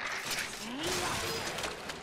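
A fiery explosion bursts with a loud boom.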